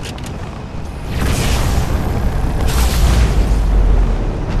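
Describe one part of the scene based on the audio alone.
Weapons fire in bursts nearby.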